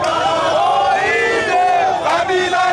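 A young man shouts close by.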